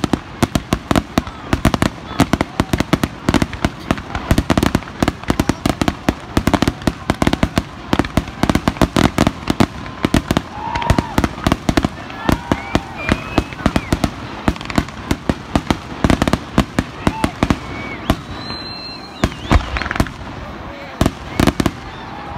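Fireworks crackle and pop rapidly in the distance.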